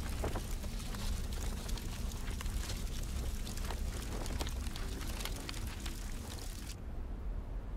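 Fire crackles as paper burns.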